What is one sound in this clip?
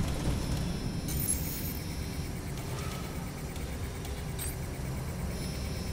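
An electronic signal warbles and hisses softly.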